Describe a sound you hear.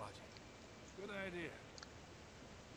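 A man speaks calmly and briefly.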